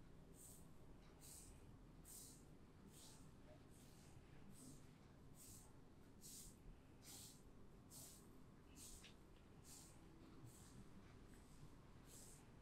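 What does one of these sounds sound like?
Fingers rub through hair in a steady, rhythmic swish, close by.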